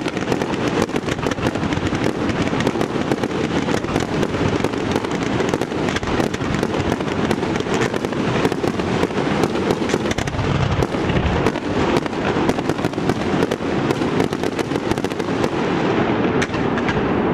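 Firework shells burst overhead with sharp bangs.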